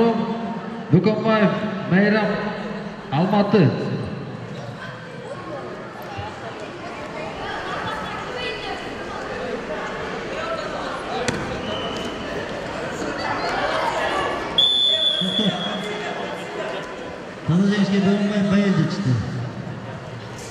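A man shouts instructions loudly in a large echoing hall.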